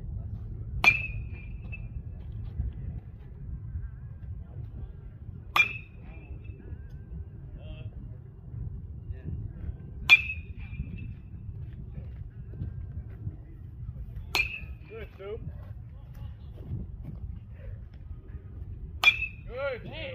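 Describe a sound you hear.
A metal bat pings sharply as it hits a baseball, ringing briefly each time.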